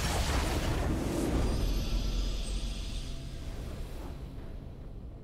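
A triumphant game fanfare bursts out loudly and fades away.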